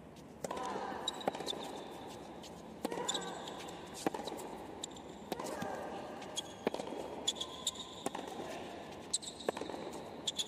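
Tennis shoes squeak sharply on a hard court.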